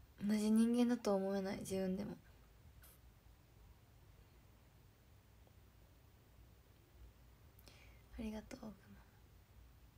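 A young woman speaks close to a microphone, softly and briefly.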